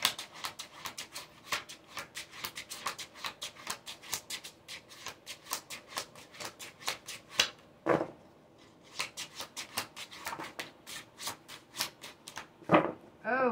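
Cards riffle and flick quickly while being shuffled.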